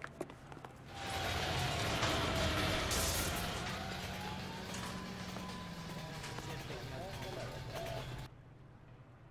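A tram rolls by on the street.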